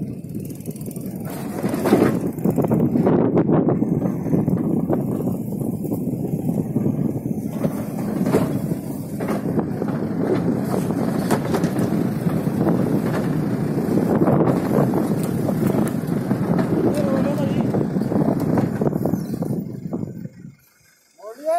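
A vehicle rumbles steadily while driving on a rough track.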